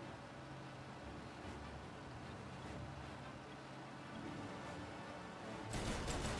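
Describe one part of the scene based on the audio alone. An old car engine hums steadily.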